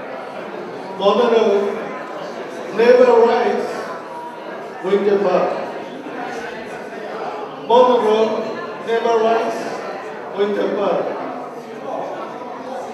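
A middle-aged man reads out through a microphone in an echoing room.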